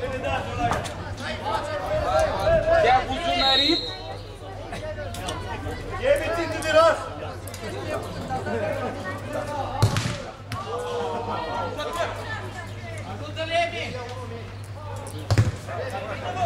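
A football is kicked with a sharp thud.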